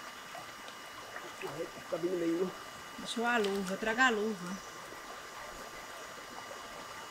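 Water laps softly against a small floating box.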